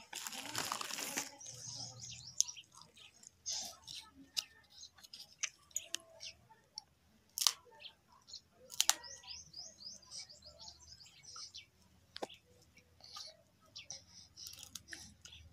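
A toddler chews and sucks noisily on a snack close by.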